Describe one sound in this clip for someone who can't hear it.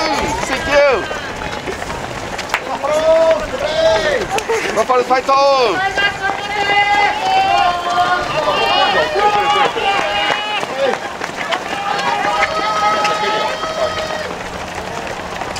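Many running feet patter on pavement.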